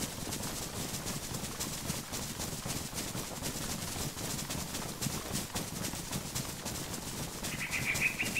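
Footsteps crunch through dry leaves at a steady walking pace.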